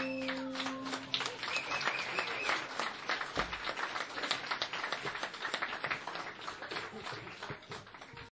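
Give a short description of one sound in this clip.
Drums and cymbals are played with quick taps and crashes.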